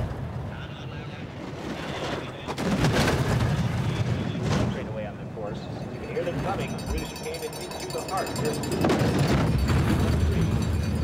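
Sled runners rumble and scrape along an icy track.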